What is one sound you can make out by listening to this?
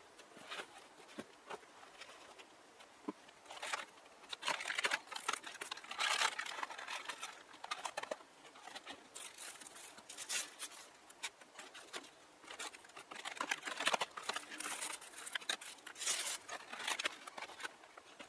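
Hands crinkle and rustle clear plastic packaging.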